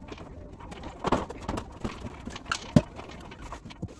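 A ladder knocks and clatters.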